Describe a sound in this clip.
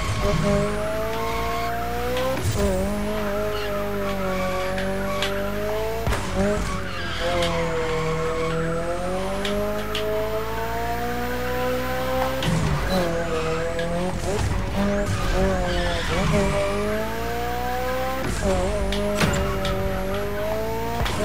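Tyres screech while a car drifts.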